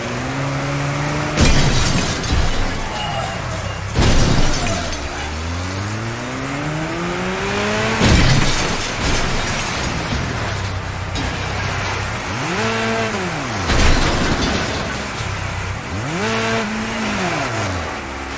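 A car engine revs up and down throughout.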